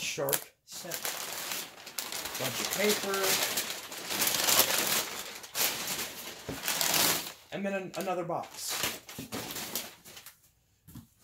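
Packing paper rustles and crinkles close by.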